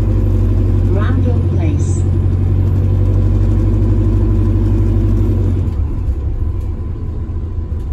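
A bus engine rumbles low and steady, then eases off.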